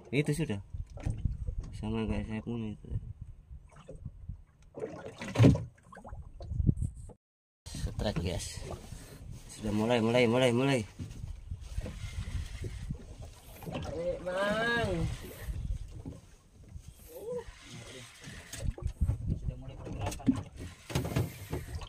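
A fishing reel whirs as the line is wound in.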